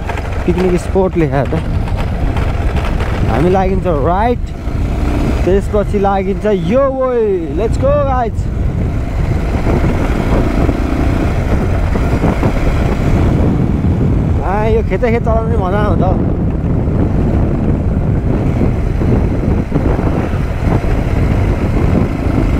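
A motorcycle engine hums while cruising along a road.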